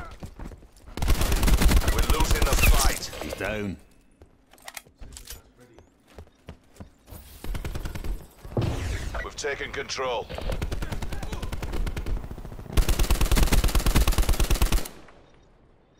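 Rapid gunfire rattles loudly in quick bursts.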